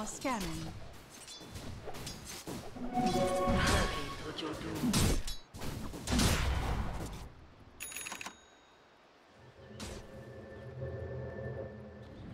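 Game weapons clash in short hits.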